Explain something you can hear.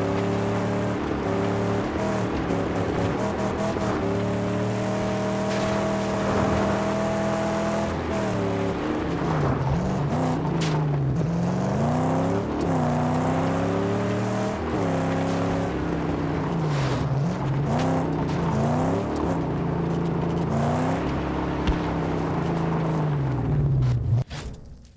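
Tyres crunch over loose gravel and snow.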